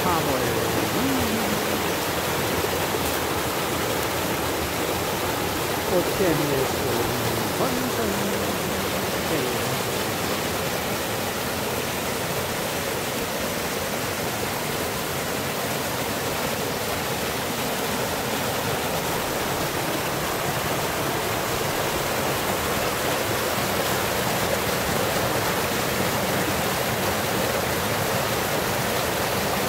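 A stream rushes and splashes steadily over rocks, close by.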